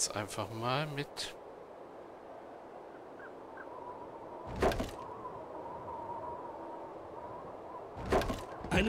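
Gentle waves lap at a sandy shore.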